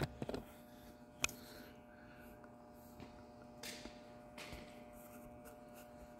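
Footsteps pad on a rubber floor.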